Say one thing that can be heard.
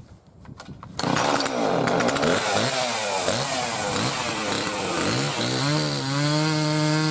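A chainsaw engine starts and roars loudly, revving up and down close by.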